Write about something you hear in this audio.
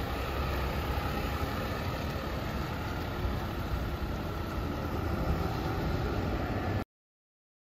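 A bus engine rumbles steadily as the bus turns slowly.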